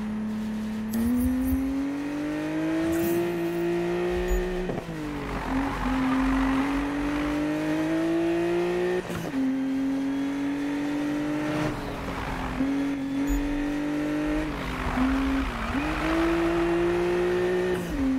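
A car engine revs hard and roars, rising and dropping with each gear change.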